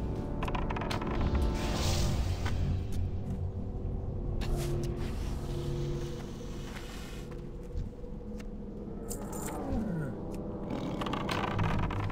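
Hits land with sharp impacts.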